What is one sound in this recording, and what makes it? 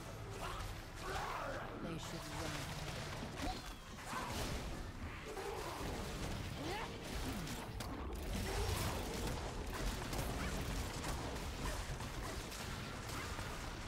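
Magic blasts whoosh and crackle in a fast, busy fight.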